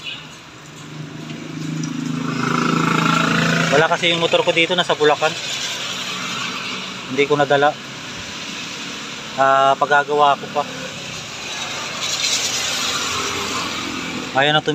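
Tyres hiss on a wet road as vehicles pass.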